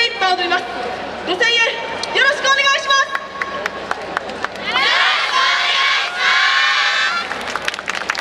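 A large group of young women and men shout and chant loudly in unison outdoors.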